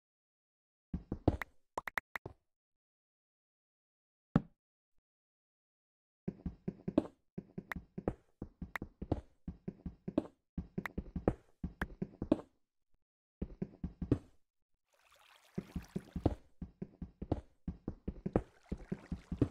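A pickaxe chips rapidly at stone in quick repeated knocks.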